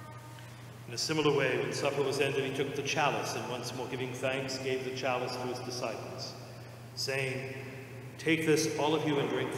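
A man chants in a large echoing hall.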